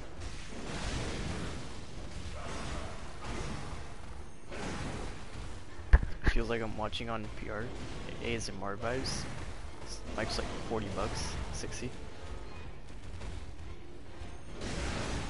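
Flames whoosh and roar in bursts.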